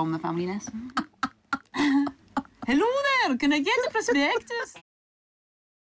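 A second young woman laughs loudly, close by.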